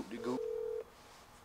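A young man speaks briefly close by.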